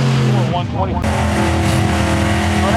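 A pickup truck engine idles nearby.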